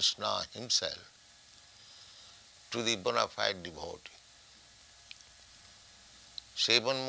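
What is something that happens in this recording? An elderly man speaks slowly and calmly, close by, in short phrases with pauses.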